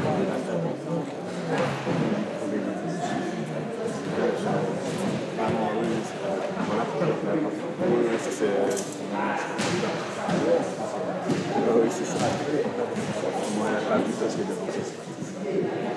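Men and women chatter nearby in a large echoing hall.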